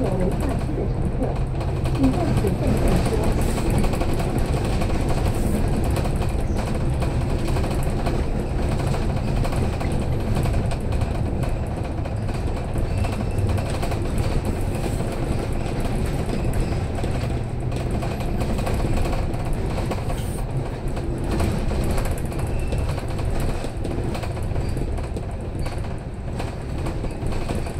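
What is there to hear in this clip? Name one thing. A bus engine rumbles steadily as the bus drives along a road.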